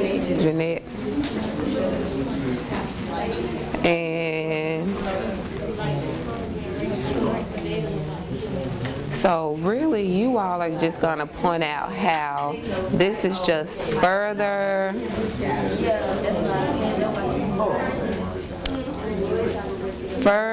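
A woman speaks to a group in a room.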